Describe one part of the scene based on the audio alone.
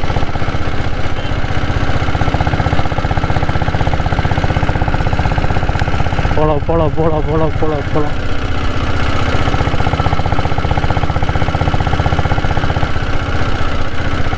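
A motorcycle engine thumps steadily close by as the bike rides along.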